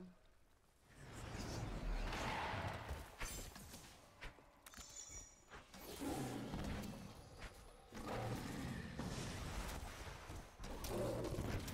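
Magic blasts crackle and boom in bursts.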